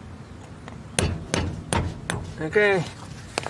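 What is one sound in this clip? Metal knocks against metal a few times.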